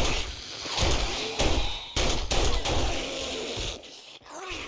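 A gun fires several loud shots.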